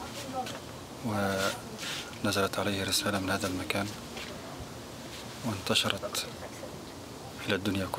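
A man speaks calmly into a microphone up close.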